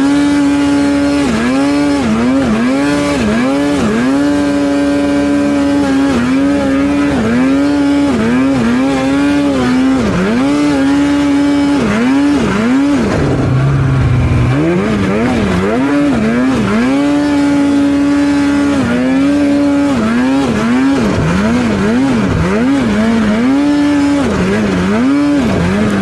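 A snowmobile engine drones loudly close by, its pitch dipping and rising again and again as the throttle is worked.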